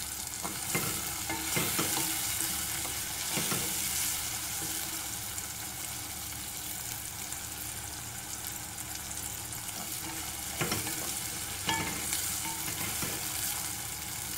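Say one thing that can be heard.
A wooden spoon scrapes and stirs in a pot.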